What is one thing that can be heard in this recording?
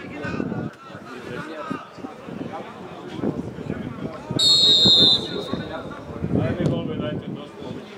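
Men shout across an open field.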